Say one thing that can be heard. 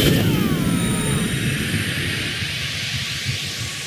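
Sparkling magic chimes ring out and slowly fade.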